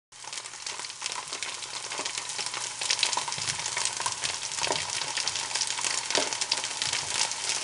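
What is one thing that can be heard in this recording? A wooden spatula scrapes against a pan.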